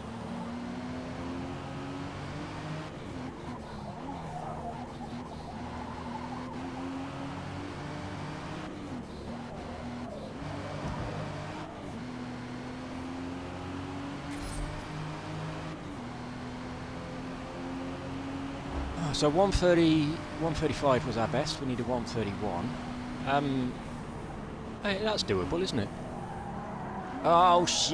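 A car engine drones steadily, rising and dropping in pitch as gears change.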